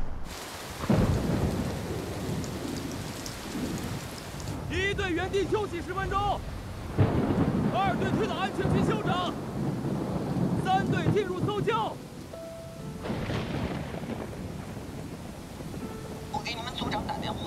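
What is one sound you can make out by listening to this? Heavy rain pours and splashes onto the ground.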